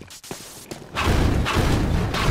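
A weapon fires with a loud blast.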